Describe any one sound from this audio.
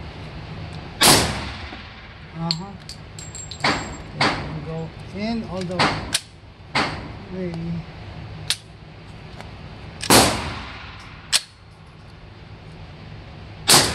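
A rifle fires sharp, loud shots that echo in an indoor range.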